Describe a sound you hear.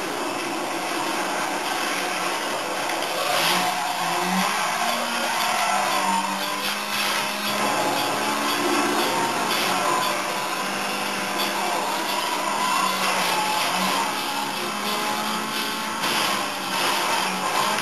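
Tyres screech as a racing car drifts around corners.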